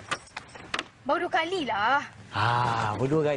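A woman speaks.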